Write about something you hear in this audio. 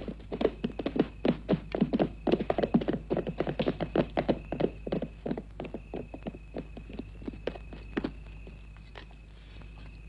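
Horse hooves clop steadily on hard ground.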